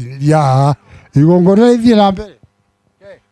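An elderly man speaks loudly and close by.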